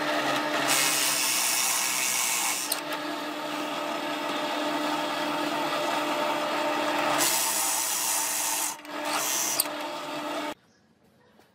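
A drill press bores into wood with a Forstner bit.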